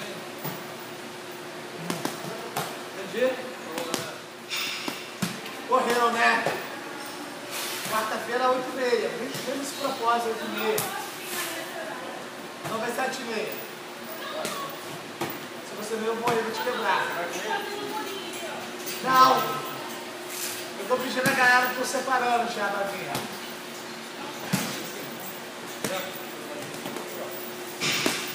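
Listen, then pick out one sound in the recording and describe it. Gloved punches smack against padded mitts in quick bursts.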